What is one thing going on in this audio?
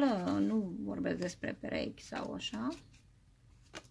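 A card is laid down on a table with a soft tap.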